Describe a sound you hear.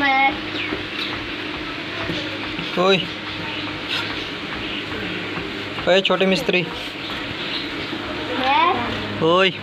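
A young child speaks up close in short, high-pitched calls.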